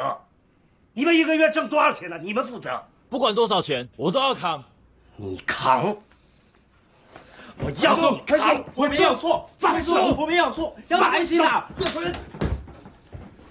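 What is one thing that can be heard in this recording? A young man answers with tense, pleading speech.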